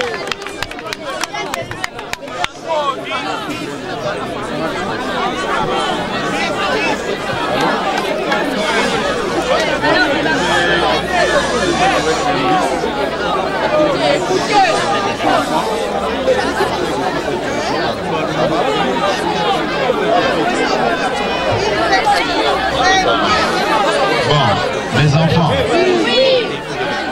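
A crowd of people talk and shout all around, close by.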